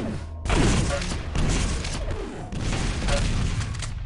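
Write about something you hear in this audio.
Weapons fire in a fast-paced game.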